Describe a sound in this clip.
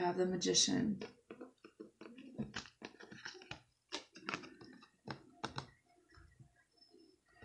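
Cards tap and slide against a table.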